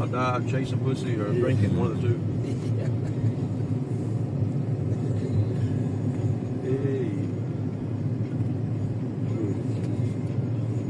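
A car rumbles steadily as it drives along.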